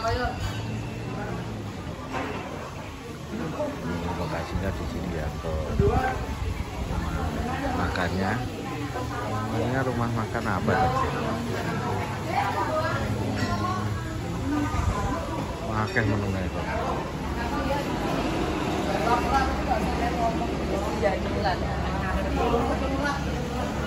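A crowd chatters in the background.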